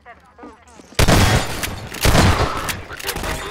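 A shotgun fires loud blasts.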